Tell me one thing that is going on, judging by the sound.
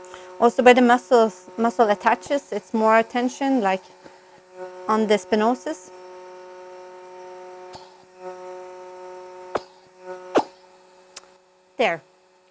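A suction pump hums steadily.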